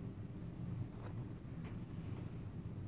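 A wooden clothespin clicks as it is unclipped.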